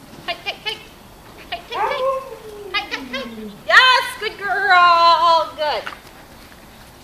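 A woman talks to a dog in a high, encouraging voice.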